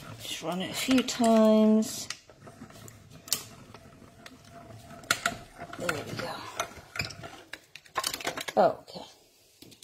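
A plastic die-cutting machine clicks and clatters as it is handled.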